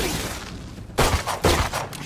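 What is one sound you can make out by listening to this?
A pistol fires a shot.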